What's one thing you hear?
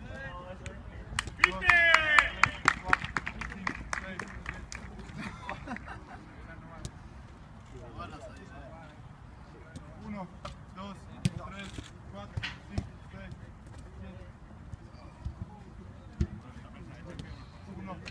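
Footballs are kicked on a grass pitch with dull thumps, outdoors at a distance.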